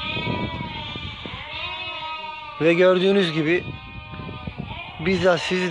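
Many sheep bleat in the background.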